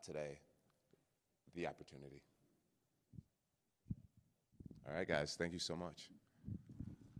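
A man speaks calmly into a microphone, with short pauses.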